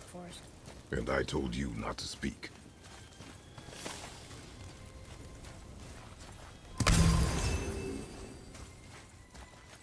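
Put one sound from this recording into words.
Footsteps crunch over snowy ground.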